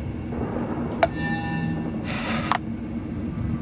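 A bright game chime rings with a short whooshing sweep.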